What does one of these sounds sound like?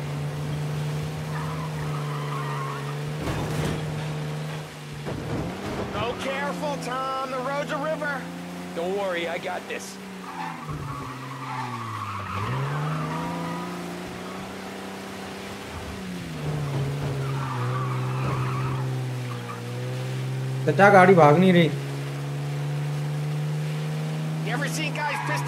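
An old car engine hums and revs, rising and falling in pitch.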